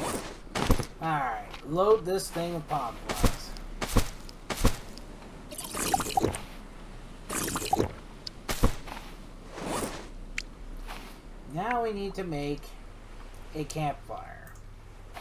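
Waves wash gently on a nearby shore.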